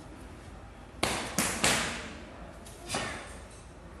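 A cloth uniform snaps sharply with quick martial arts strikes.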